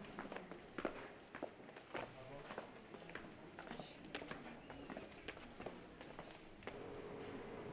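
Footsteps tap on stone steps.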